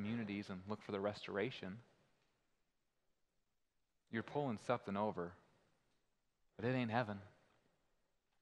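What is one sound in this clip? A young man speaks calmly into a microphone, in short phrases with pauses.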